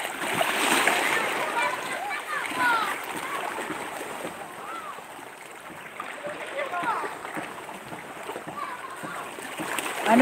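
A person wades through shallow water with splashing steps.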